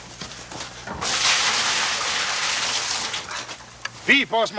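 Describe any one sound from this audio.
Liquid pours from a pail into a tank with a rushing splash.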